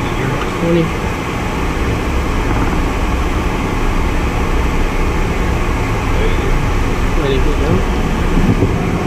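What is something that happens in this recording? Wind rushes against the cockpit canopy.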